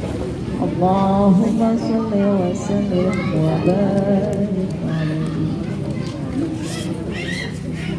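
A woman sings into a microphone, heard through a loudspeaker outdoors.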